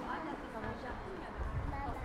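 A young woman talks calmly nearby.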